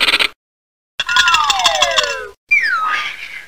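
A cartoon whistle slides down in pitch.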